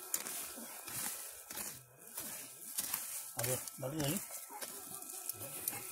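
A shovel scrapes and thuds into soil.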